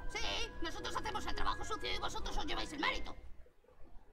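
A cartoon character speaks with animation in a high, excited voice.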